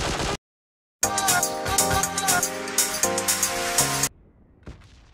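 A phone ringtone plays a loud melody.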